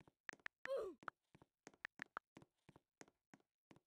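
Keys on a touch keyboard tick in quick taps.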